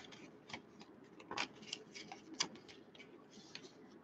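Sticky notes rustle as they are flipped.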